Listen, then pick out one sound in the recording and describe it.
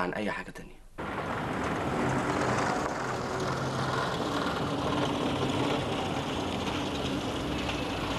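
A car engine hums as the car drives slowly past.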